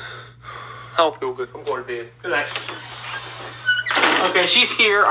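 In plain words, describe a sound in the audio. An elderly man speaks over an online call.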